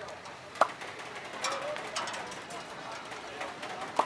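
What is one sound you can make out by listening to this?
Bread slaps down onto a metal tray.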